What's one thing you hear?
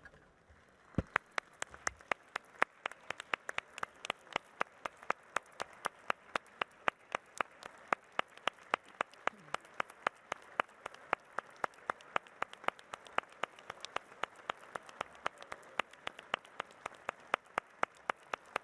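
A crowd claps steadily in a large hall.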